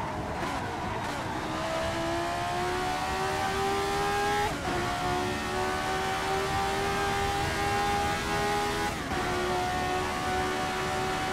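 A racing car engine whines loudly, rising in pitch through each gear and dropping sharply at gear changes.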